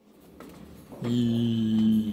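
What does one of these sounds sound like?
A treadmill motor hums steadily.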